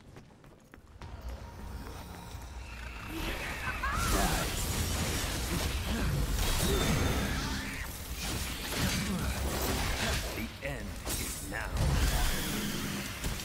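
Blades slash and clash in a fierce fight.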